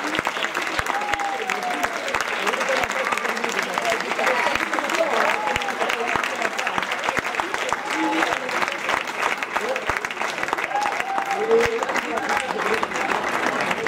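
Audience members cheer and whoop.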